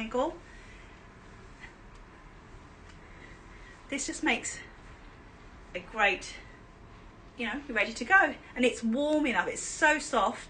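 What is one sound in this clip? A woman speaks with animation close to the microphone, in short bursts with pauses.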